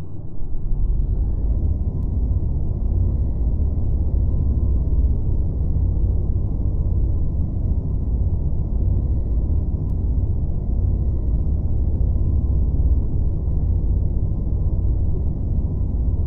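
A thin electric whine rises and then holds steady.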